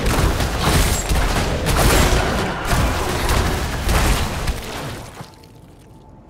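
Magic blasts and weapon blows crash loudly in a fight.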